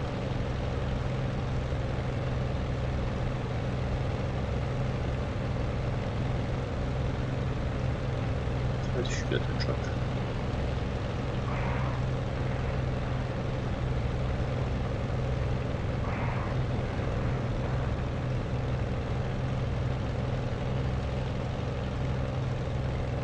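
A propeller engine drones steadily throughout.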